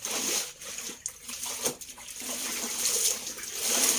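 Water drips and pours from wrung cloth into a basin.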